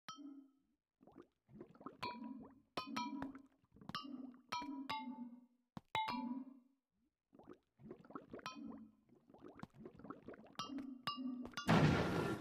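Short game chimes ring as items are placed.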